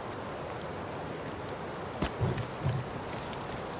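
A campfire crackles and pops steadily.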